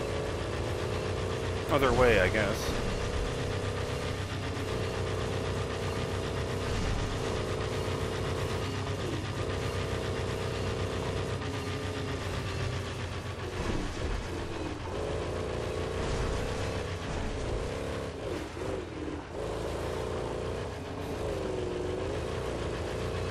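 An engine roars steadily, rising and falling in pitch as a vehicle speeds along.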